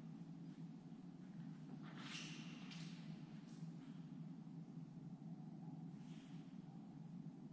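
A person's footsteps shuffle softly across a stone floor in a quiet, echoing hall.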